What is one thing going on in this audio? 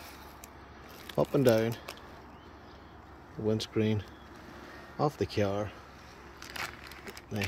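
A plastic bag of water crinkles and slides over icy glass.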